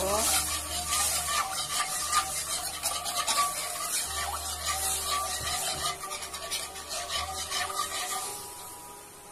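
Hot syrup sizzles and bubbles in a pan.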